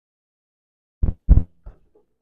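Hands pat dough on a wooden board with soft thumps.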